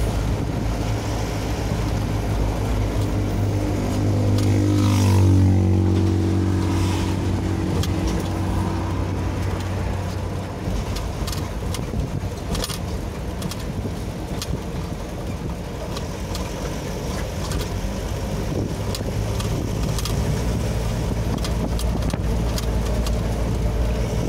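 A vehicle engine rumbles steadily from inside a moving car.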